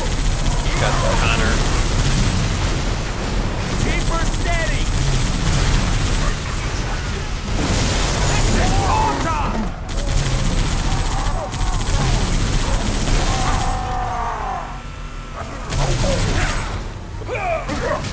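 Energy weapons whine and blast nearby.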